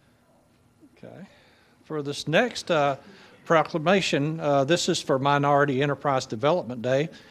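A middle-aged man reads aloud into a microphone.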